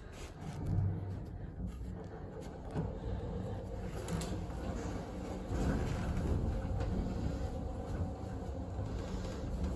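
An elevator rumbles low and steadily as it moves.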